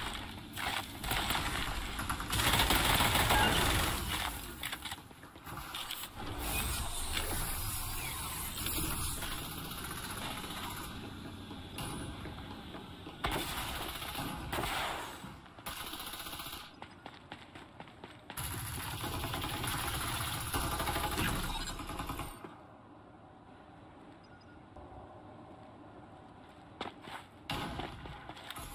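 Footsteps run quickly over dry ground and metal floors.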